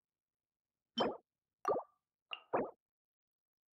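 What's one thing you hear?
Soft interface clicks sound in a menu.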